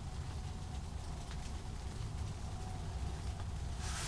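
A newspaper rustles as its pages are handled.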